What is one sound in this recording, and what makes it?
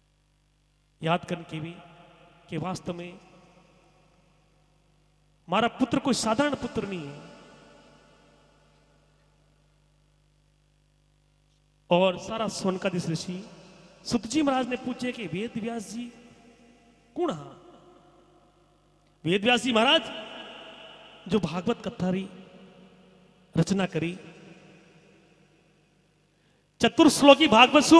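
A man sings loudly into a microphone in short phrases with echoing pauses.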